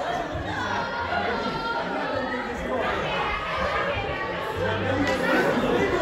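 Several men talk and laugh together in an echoing hall.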